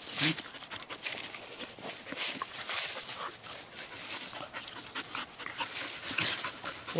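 Dry leaves rustle and crunch under wrestling dogs.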